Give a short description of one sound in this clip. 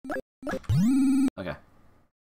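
An arcade game plays a rising electronic tone.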